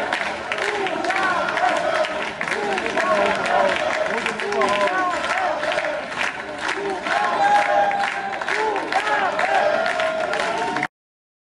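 A large crowd applauds outdoors.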